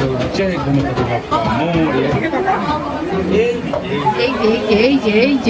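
A crowd of men and women chatter loudly nearby in a hall.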